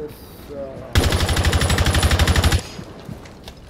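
A rifle fires a rapid, loud burst.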